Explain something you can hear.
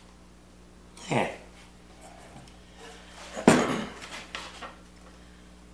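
A wooden board scrapes and knocks on a tabletop as it is lifted.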